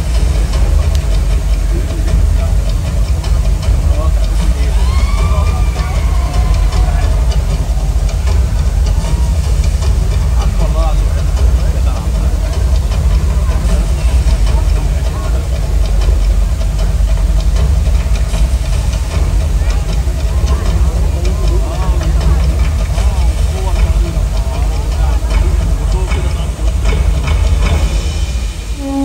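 A large crowd murmurs and chatters in an open-air arena.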